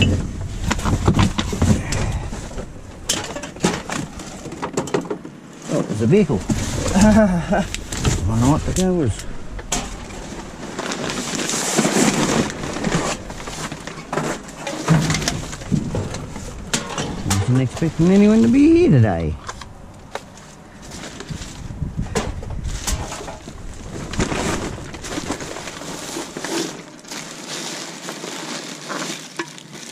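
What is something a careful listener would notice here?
Plastic bags rustle and crinkle as gloved hands dig through them.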